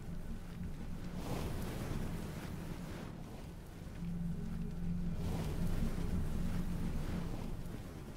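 Flames roar steadily nearby.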